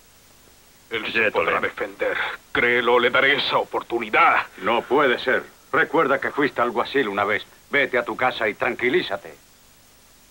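A middle-aged man speaks agitatedly and quickly, close by.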